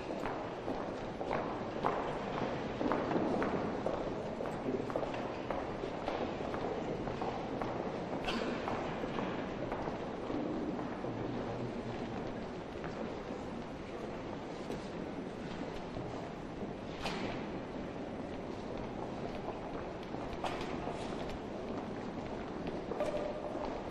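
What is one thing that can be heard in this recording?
Footsteps echo across a hard floor in a large hall.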